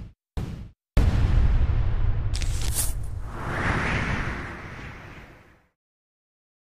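A strong gust of wind whooshes loudly, then slowly fades away.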